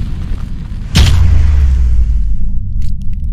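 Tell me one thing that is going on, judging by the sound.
A fiery explosion booms and roars.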